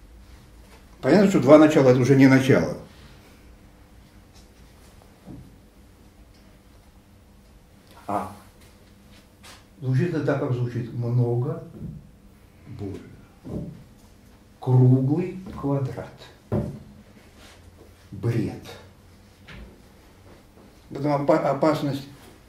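An elderly man speaks with animation, in bursts with pauses.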